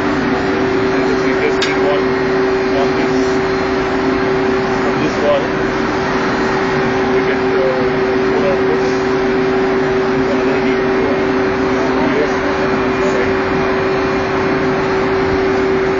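A large engine runs with a loud, steady hum and drone.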